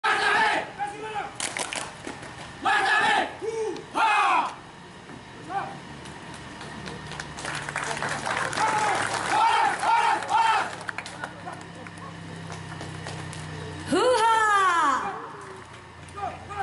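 A group of young men shout and chant in unison outdoors.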